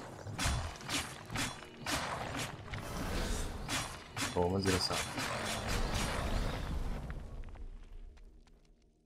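Weapons clash and magic blasts crackle in a fast fight.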